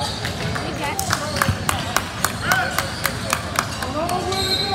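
A basketball bounces rapidly on a hard floor, echoing in a large hall.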